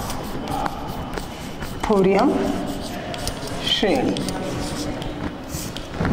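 Chalk scratches and taps on a blackboard.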